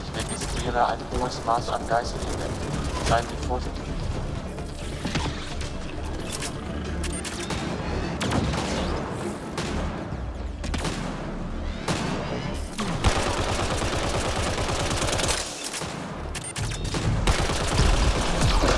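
Energy weapons fire in sharp bursts.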